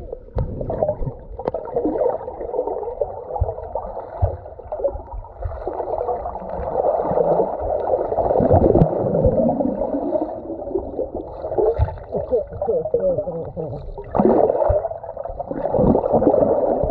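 Muffled underwater sloshing and churning of water goes on throughout.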